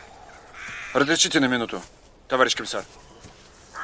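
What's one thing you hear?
A second man asks a question politely.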